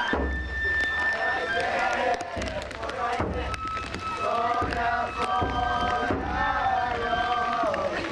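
A crowd of men chant and shout loudly together outdoors.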